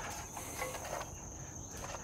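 A shovel scrapes into soil.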